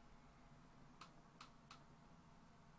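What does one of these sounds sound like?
A man makes soft kissing smacks close by.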